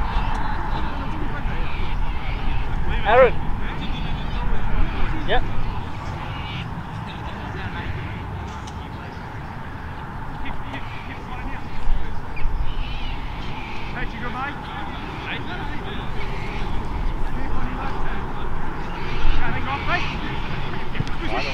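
Spectators talk and call out in a murmur from a distance.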